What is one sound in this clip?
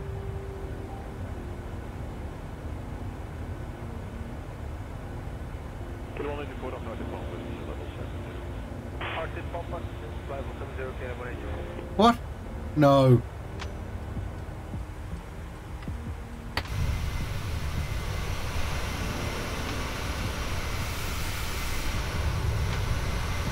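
Jet engines drone steadily.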